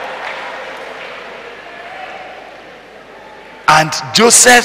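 A crowd laughs and murmurs in a large hall.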